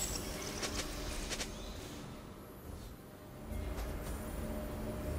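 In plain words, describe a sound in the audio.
Magic spells crackle and burst in short bright bursts.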